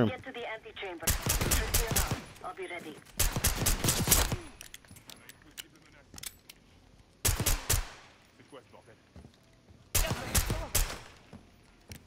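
A pistol fires several sharp shots in bursts.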